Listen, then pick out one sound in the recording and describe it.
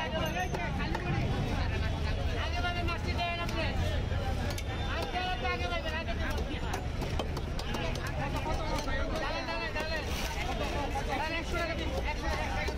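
A man slices raw fish on an upright curved blade.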